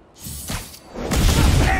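Heavy blows and thuds land in a brawl.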